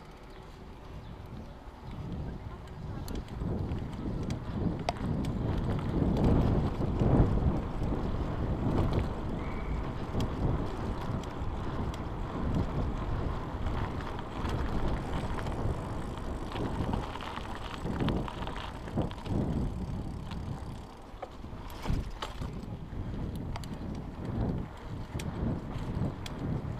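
A bicycle rattles over bumps and paving.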